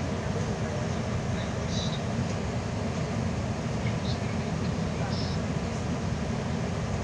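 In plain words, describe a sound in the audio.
Tyres hiss and crunch over a snowy road.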